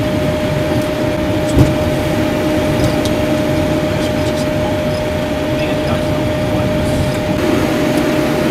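Jet engines rumble steadily as an airliner taxis.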